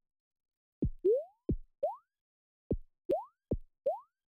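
Short electronic game sounds chirp upward in pitch.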